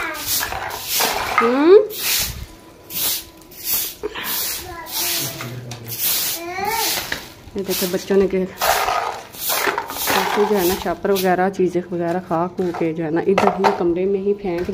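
A stiff broom sweeps across a concrete floor in repeated strokes.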